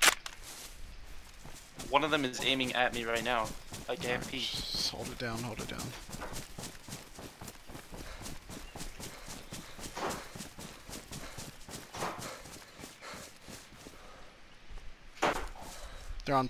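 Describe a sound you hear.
Footsteps rustle quickly through undergrowth.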